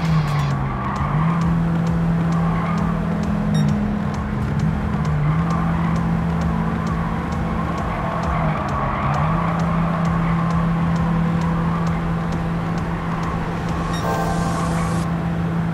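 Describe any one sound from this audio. A small car's engine drones steadily, its pitch dipping and rising with gear changes.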